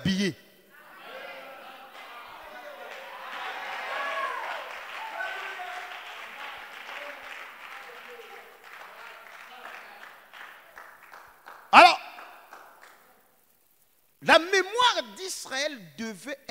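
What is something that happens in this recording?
A man preaches with animation into a microphone in a large echoing hall.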